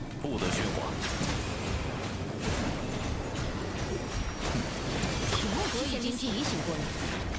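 Game magic blasts and whooshes with quick bursts of impact.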